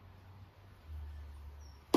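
A paintbrush swishes softly across wood.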